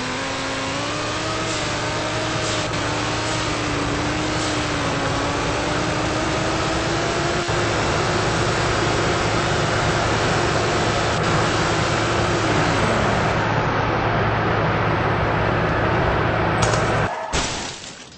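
A racing car engine roars at high speed, revving steadily higher.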